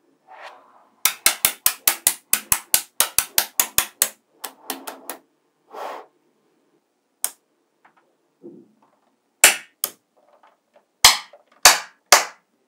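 Blocks of magnetic balls clack down onto a hard tabletop.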